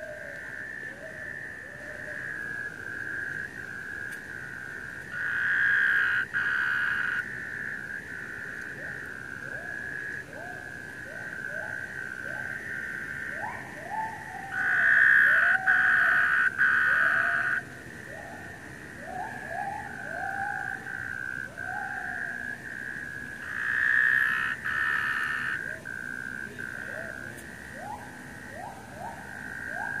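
Water trickles in a drain below.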